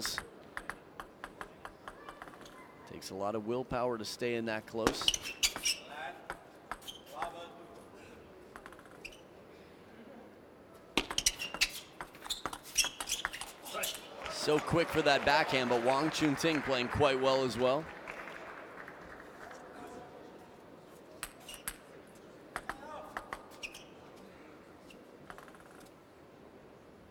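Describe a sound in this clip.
A table tennis ball bounces lightly on a table.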